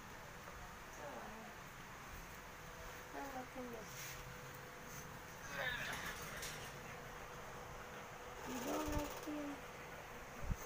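A young woman speaks softly and gently close by.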